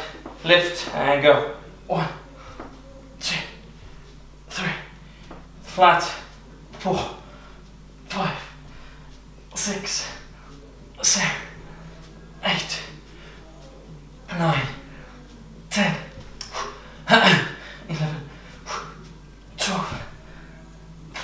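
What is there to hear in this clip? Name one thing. A man breathes out hard in short, regular bursts as he exercises.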